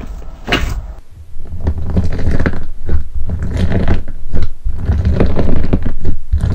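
Fingers squeeze thick slime with soft crunching and popping.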